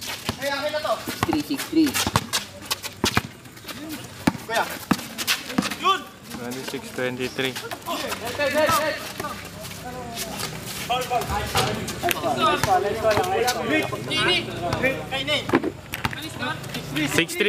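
Young men shout and call out during a game.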